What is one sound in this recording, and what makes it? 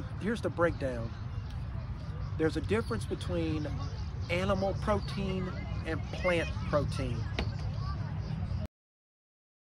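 A man talks calmly and close by, outdoors.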